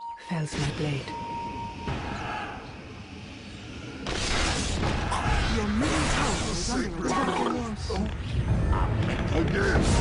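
Spell blasts and clashing weapons sound from a video game battle.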